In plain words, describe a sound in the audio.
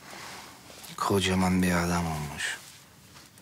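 A man speaks briefly in a low, calm voice close by.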